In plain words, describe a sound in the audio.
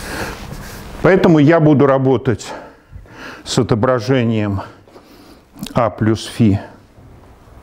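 An elderly man speaks calmly, lecturing.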